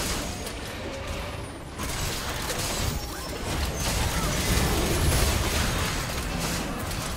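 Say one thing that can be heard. Magic spells whoosh and crackle in a busy fight.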